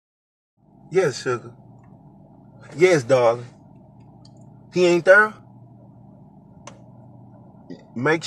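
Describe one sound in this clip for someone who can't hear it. A man talks close by in short bursts.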